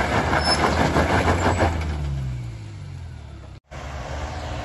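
A tractor engine chugs loudly close by.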